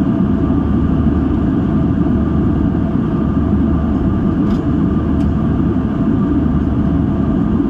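Jet engines roar steadily inside an airplane cabin in flight.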